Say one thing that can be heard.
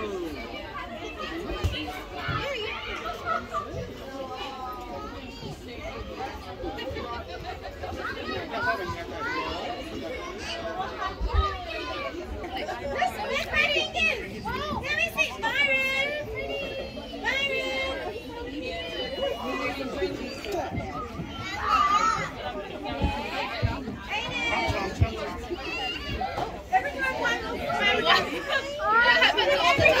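Young children chatter and shout nearby, outdoors.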